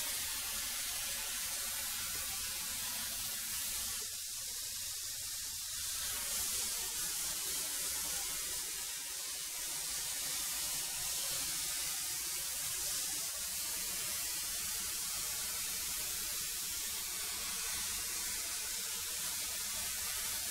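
A thickness planer roars steadily as boards feed through it.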